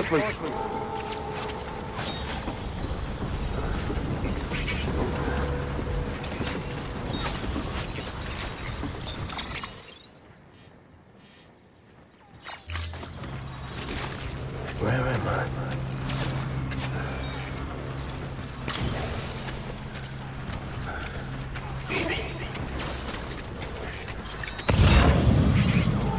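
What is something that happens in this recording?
Heavy metal footsteps clank and thud as a large robot walks.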